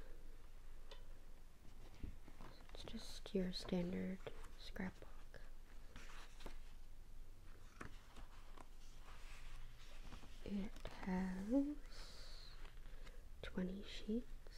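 Paper pages rustle and flip as a sketchbook is leafed through.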